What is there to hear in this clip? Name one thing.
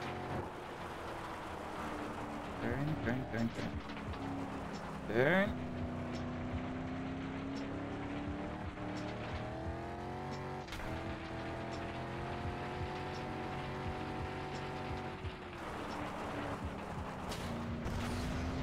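A truck engine roars steadily, its pitch rising and falling as it speeds up and slows down.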